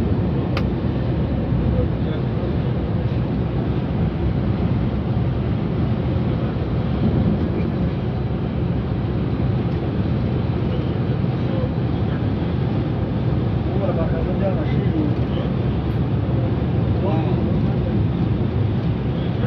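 Tyres roll with a steady rumble on the road.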